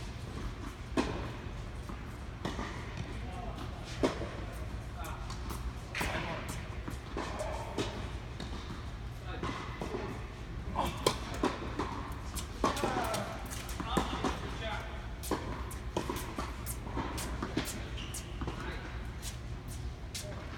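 Tennis balls are struck with rackets, the thwacks echoing around a large indoor hall.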